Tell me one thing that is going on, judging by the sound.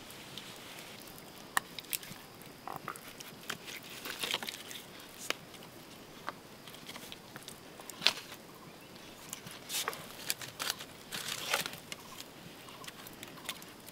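A small fire crackles.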